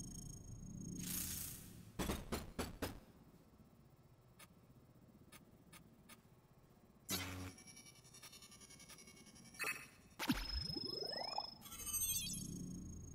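Electronic game chimes and whooshes play.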